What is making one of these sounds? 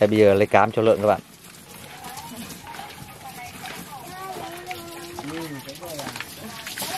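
Water sloshes and splashes in a bucket.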